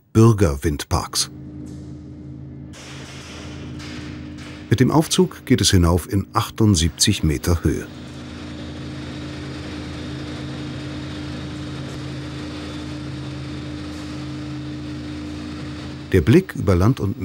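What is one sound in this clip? A lift motor hums steadily.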